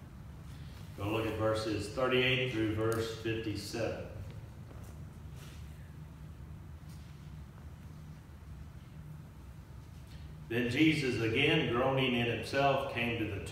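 A man speaks slowly and calmly through a microphone, with pauses, in a room with some echo.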